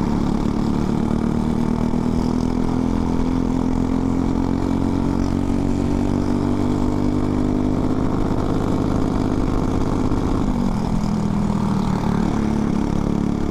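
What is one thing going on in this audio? A four-stroke single-cylinder racing kart engine revs at full throttle, climbing in pitch, then eases off for a corner.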